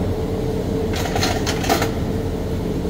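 Metal gear clicks and knocks.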